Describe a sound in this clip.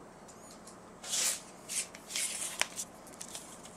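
Hands handle a small plastic container with clicks and rustles.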